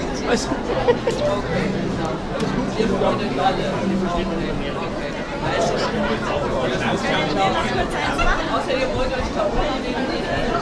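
A crowd chatters in the background.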